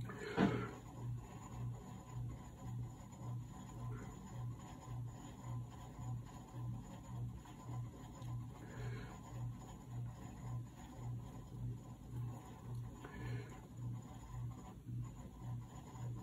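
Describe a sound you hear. A brush dabs and scrapes softly on paper.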